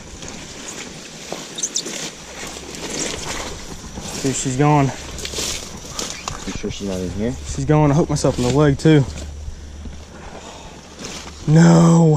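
Leafy plants rustle and snap as they are pulled by hand.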